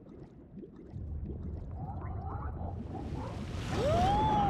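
A deep rumble swells as a giant tentacle sweeps in.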